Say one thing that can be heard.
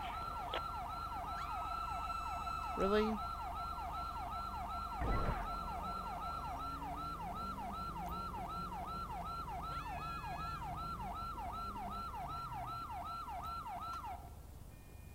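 A police siren yelps rapidly nearby.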